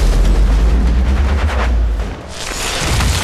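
A large creature bursts apart with a deep, rumbling blast.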